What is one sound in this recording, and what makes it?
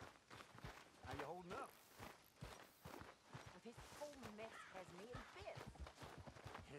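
A young man talks quietly into a microphone.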